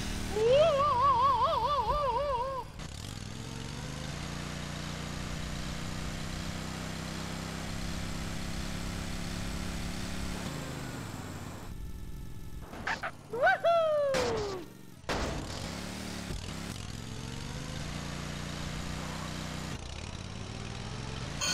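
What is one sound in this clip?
A small kart engine buzzes steadily.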